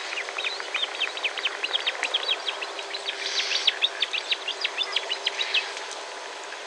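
A duck flaps its wings over water.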